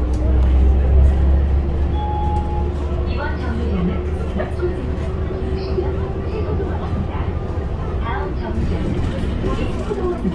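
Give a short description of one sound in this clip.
Tyres roll along the road.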